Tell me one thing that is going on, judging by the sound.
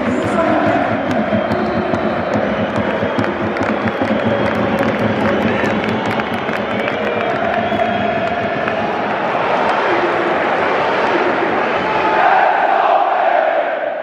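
A large stadium crowd chants and sings loudly in a big open arena.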